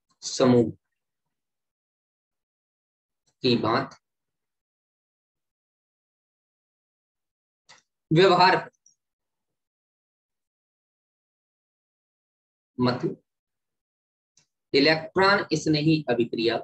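A man speaks calmly into a close microphone, in short phrases with long pauses.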